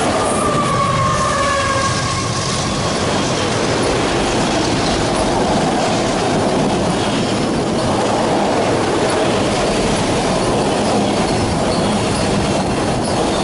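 A long freight train rumbles and clatters past close by.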